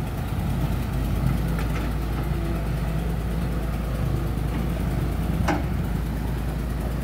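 Heavy diesel engines rumble and idle steadily close by.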